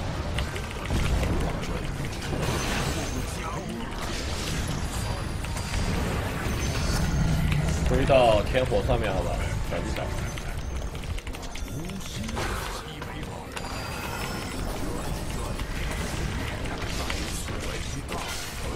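Video game spell effects crash and whoosh.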